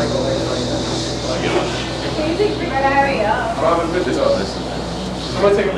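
A live band plays loudly.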